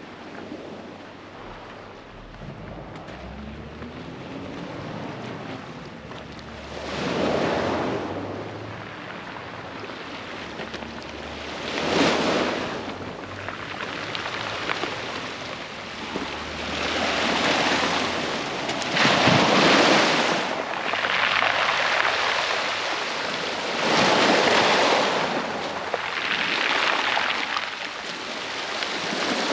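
Small waves wash and hiss over pebbles, swelling and fading again and again.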